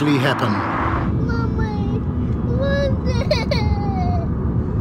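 A young boy calls out loudly inside a car.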